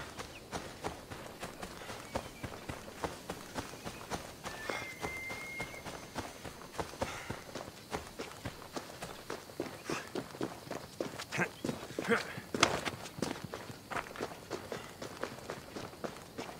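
Quick footsteps run through dry grass and over rocky ground.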